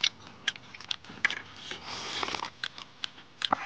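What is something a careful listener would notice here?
A man sips soup noisily from a bowl.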